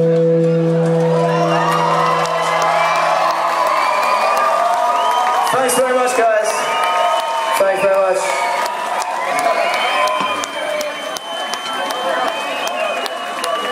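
A concert crowd cheers and screams loudly.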